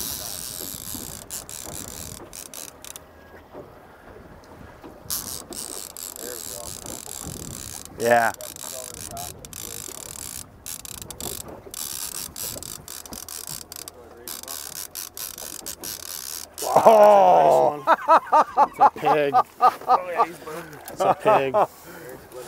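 Waves lap against a boat's hull.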